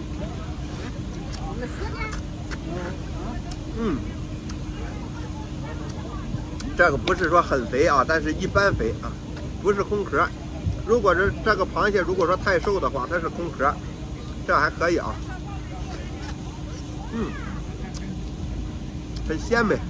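A young man slurps and chews crab noisily.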